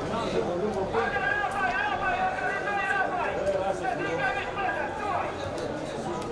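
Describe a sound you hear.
Men shout to each other across an open outdoor pitch.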